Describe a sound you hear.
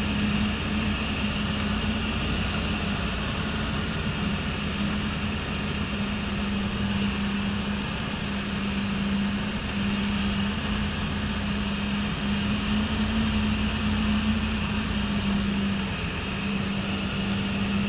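Wind rushes hard past the plane.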